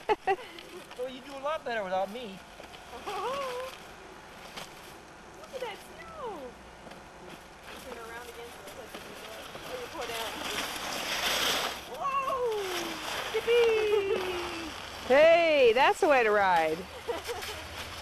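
A young child cries out and squeals.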